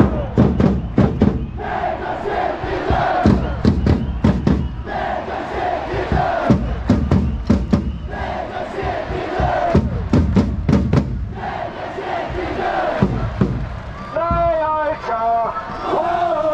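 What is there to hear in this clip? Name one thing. A large stadium crowd chants loudly in unison, echoing through the open arena.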